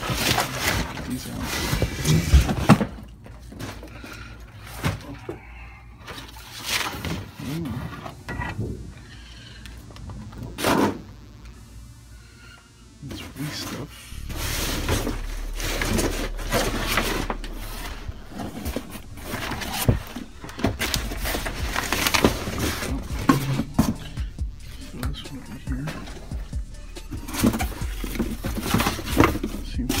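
Cardboard boxes rustle and scrape as they are handled close by.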